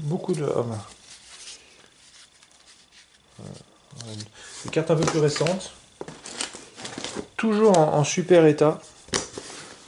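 Playing cards rustle and tap as they are stacked.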